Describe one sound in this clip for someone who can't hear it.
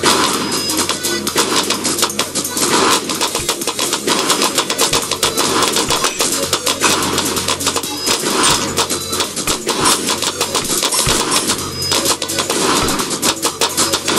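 Game sound effects pop rapidly as balloons burst.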